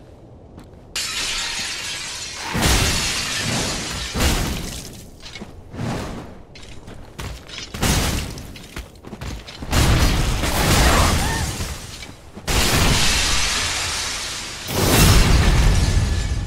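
Heavy sword blows clash and crash against a crystal creature.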